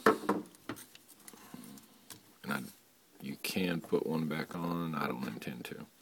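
Plastic parts click and rattle as hands handle them.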